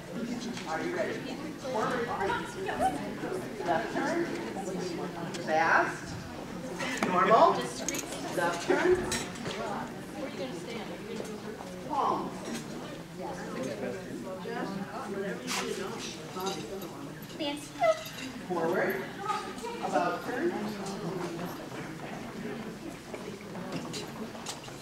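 A woman talks nearby in a large echoing hall.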